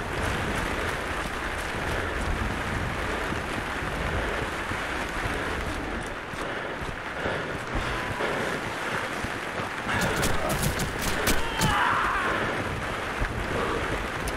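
Footsteps tread on hard stone.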